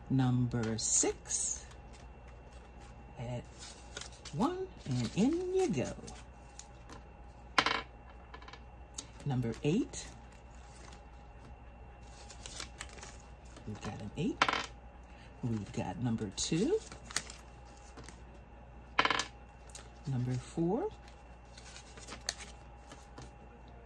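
Paper bills rustle as they are handled.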